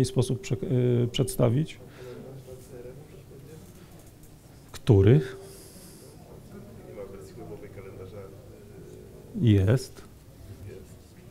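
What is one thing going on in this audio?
A man speaks to an audience through a microphone in a large hall.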